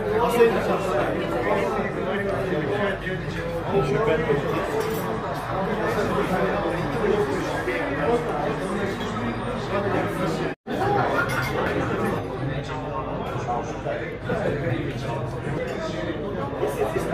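A crowd of adults chatters and murmurs nearby in a busy room.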